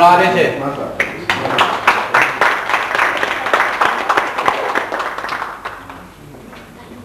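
A group of people applaud.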